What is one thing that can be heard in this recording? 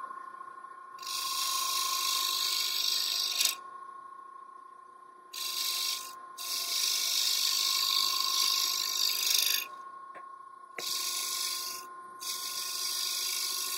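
A chisel scrapes hissing against spinning wood.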